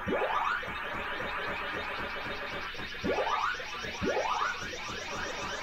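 A video game gives short rising electronic chirps a few times.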